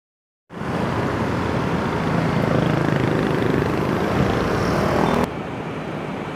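A motorbike engine passes close by.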